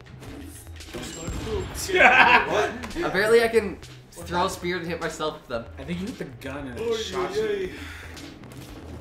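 Young men shout and laugh excitedly, heard through a microphone.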